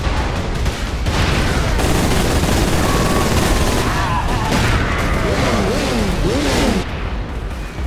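Gunfire and explosions boom loudly.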